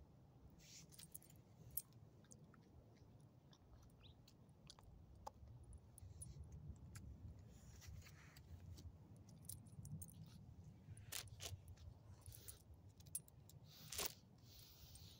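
A dog's metal tag jingles and clinks.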